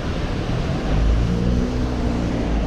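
A car drives past close by.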